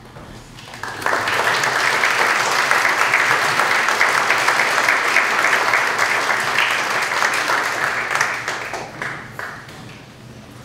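A crowd applauds in a large echoing hall, then the clapping fades.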